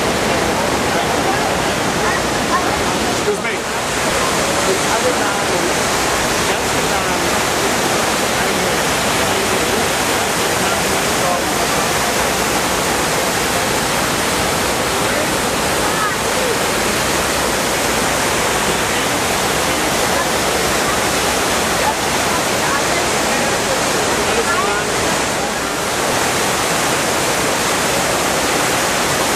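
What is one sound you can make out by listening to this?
Water pours steadily down a large waterfall with a loud rushing roar.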